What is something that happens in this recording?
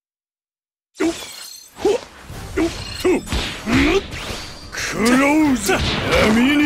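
Punches and kicks land with heavy thuds in a fight.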